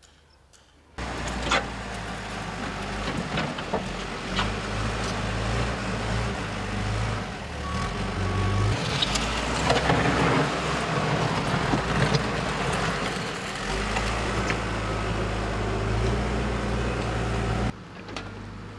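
A backhoe's diesel engine rumbles loudly nearby, its pitch shifting as it works.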